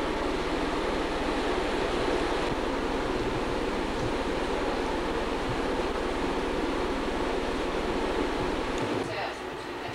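An air compressor motor runs with a loud, steady roar.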